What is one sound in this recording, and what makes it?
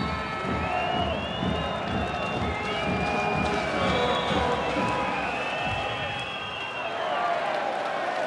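A crowd whistles loudly.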